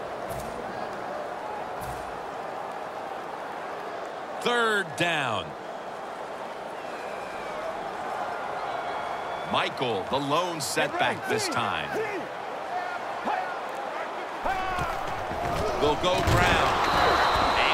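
A large stadium crowd murmurs steadily.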